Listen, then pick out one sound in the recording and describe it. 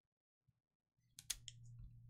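A small blade slices through a foil pack.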